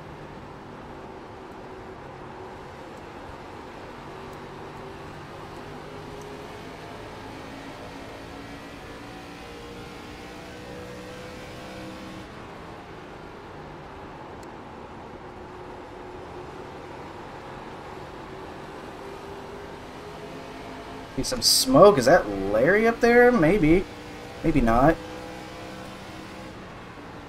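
Other race cars drone close by.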